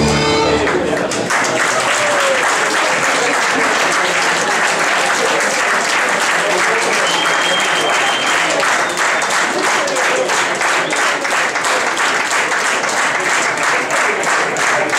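A crowd chatters loudly in a large room.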